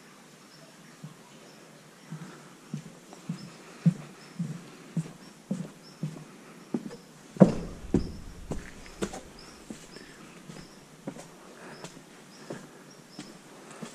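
Footsteps crunch and scuff along a rocky path.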